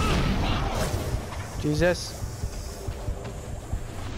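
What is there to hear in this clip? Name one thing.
Fire bursts with a loud whoosh.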